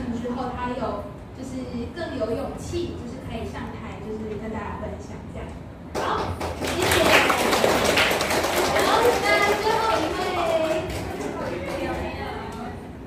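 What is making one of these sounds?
A young woman speaks through a microphone.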